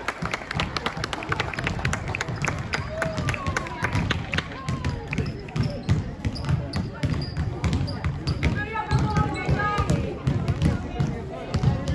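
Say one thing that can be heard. Young women call out and chatter nearby.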